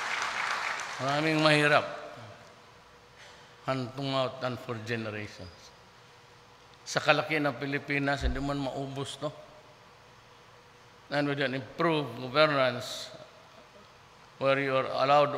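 An older man speaks calmly into a microphone over loudspeakers in a large hall.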